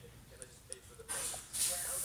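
A dog yawns with a small whine.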